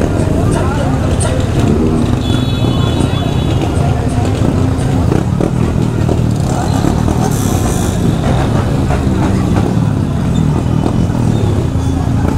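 Motorcycle engines rev loudly.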